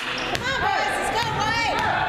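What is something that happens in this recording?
A basketball bounces on the floor with echoing thuds.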